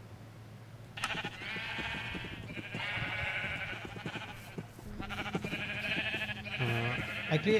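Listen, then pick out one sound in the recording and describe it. Sheep bleat repeatedly close by.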